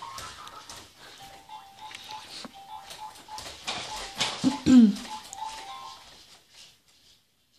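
A toy plays a short electronic tune.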